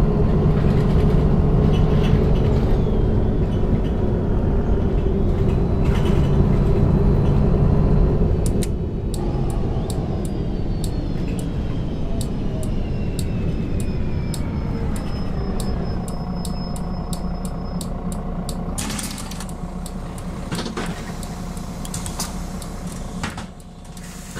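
A bus engine drones loudly, then winds down in pitch as the bus slows.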